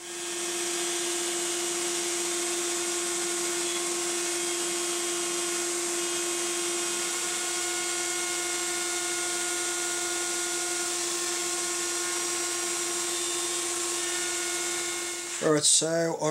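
A router spins with a steady high whine.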